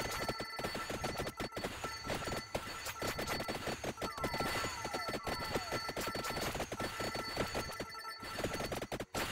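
Rapid game sound effects of hits and pickups chime and pop without pause.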